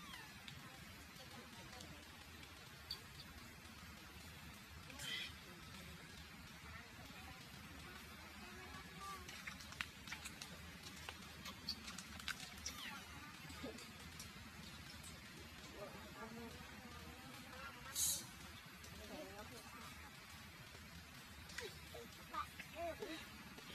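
Dry leaves rustle and crackle as small monkeys shift about.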